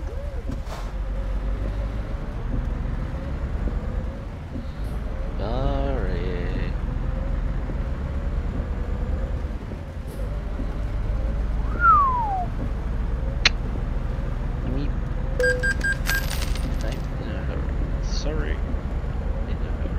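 A truck engine rumbles low and steady as the truck drives.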